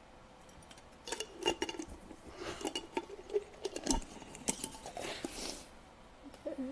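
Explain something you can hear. A plastic container rattles and clicks in a woman's hands.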